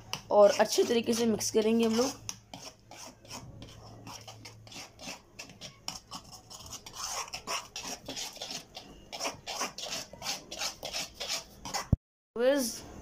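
A spoon scrapes and clicks against a metal bowl while stirring thick batter.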